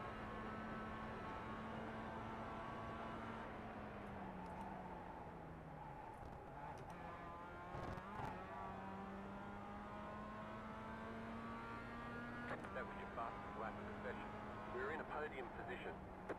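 A racing car engine drones steadily, dropping in pitch as it slows and then climbing again.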